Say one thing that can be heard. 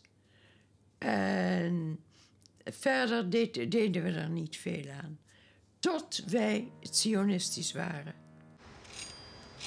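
An elderly woman speaks calmly, close to the microphone.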